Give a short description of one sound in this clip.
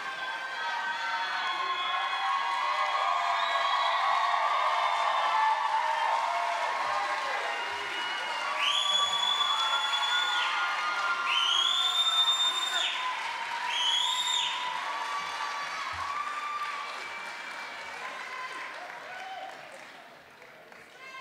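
A large crowd cheers and shouts loudly in a big hall.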